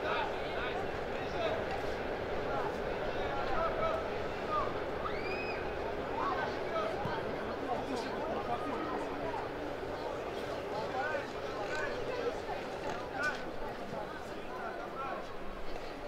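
Players shout to each other across a field.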